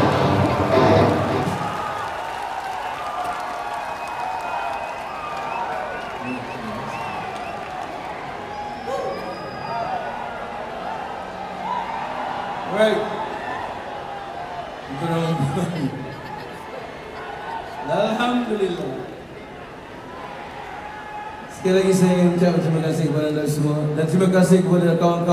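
A singer sings through loudspeakers in a large echoing arena.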